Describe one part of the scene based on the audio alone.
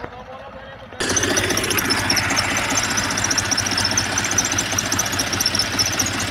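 A tractor engine rumbles loudly right up close.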